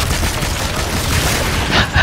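A fiery explosion roars.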